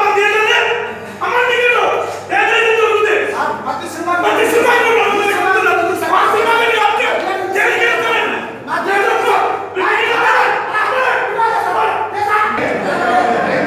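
A man speaks loudly with animation close by.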